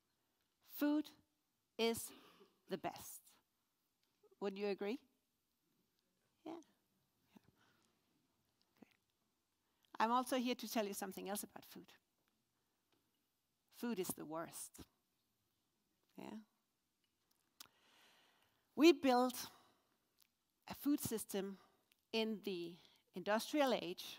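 A woman speaks with animation through a microphone in a large hall, pausing often.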